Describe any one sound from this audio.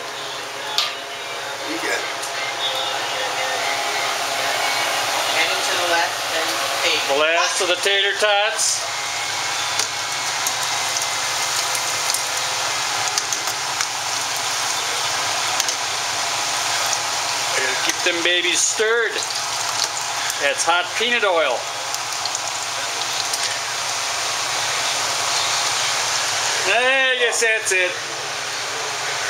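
Hot oil sizzles and crackles steadily in a pot.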